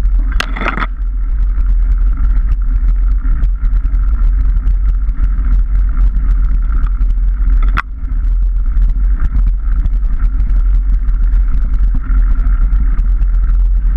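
A motorbike frame rattles and knocks over bumps.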